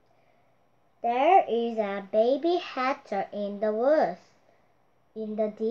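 A young girl reads aloud close by in a high, clear voice.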